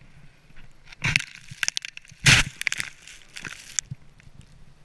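Snow thumps and rustles against a close microphone.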